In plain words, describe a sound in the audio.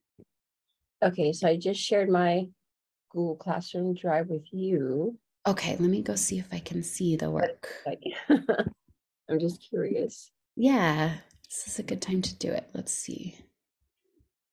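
A young woman speaks calmly through an online call microphone.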